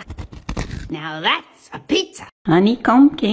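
An elderly woman talks with animation close by.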